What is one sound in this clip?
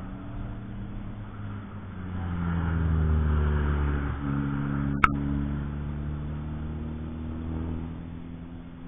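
A second race car accelerates past with a rising engine roar.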